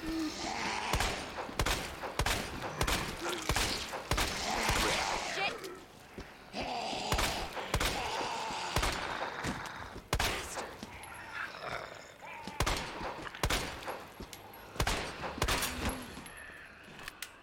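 Pistol shots ring out one after another.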